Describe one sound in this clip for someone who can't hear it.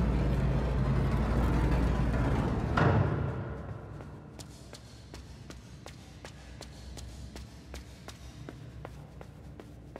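Small footsteps patter across a hard floor in a large echoing hall.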